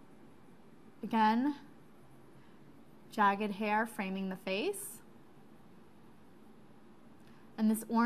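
A woman speaks calmly and close to a microphone, in short phrases with pauses.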